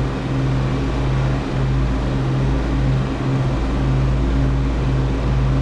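An aircraft engine drones steadily and loudly.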